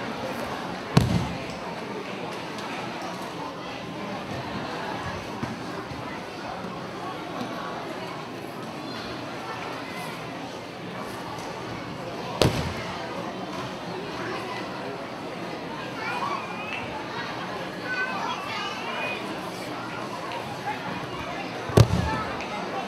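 A body lands hard on a mat with a heavy thud.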